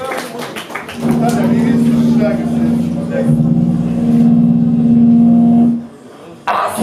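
An electric bass guitar plays low notes.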